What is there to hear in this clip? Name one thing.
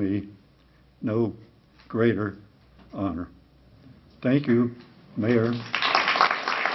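An elderly man speaks slowly and formally through a microphone in a large room.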